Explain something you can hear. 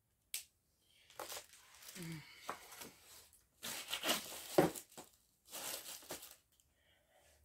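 Plastic sleeves and papers rustle and crinkle close by.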